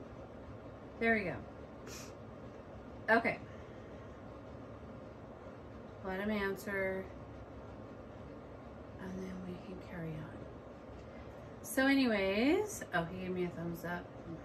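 A woman speaks calmly and expressively close to a microphone, with pauses.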